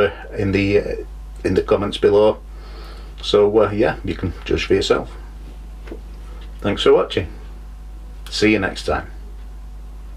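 A middle-aged man talks calmly and close to the microphone.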